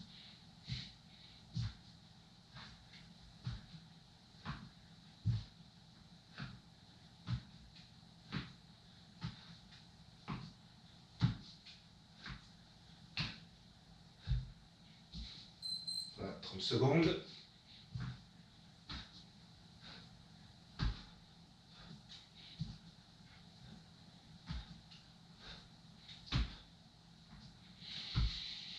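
A man's hands and feet softly thump and shuffle on a mat.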